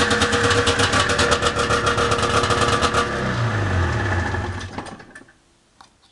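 A small motor engine runs loudly, then winds down and stops.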